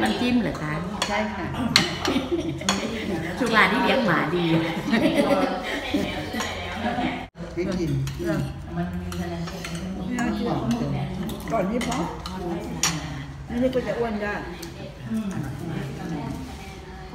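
An older woman talks casually nearby.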